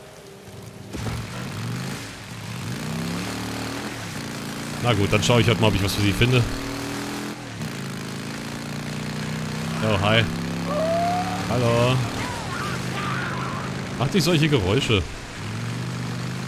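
A motorcycle engine rumbles and revs.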